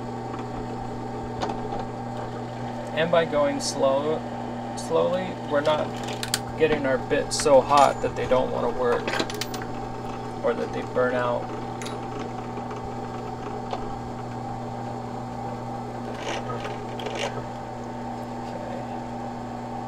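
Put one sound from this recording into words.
A drill bit grinds into metal.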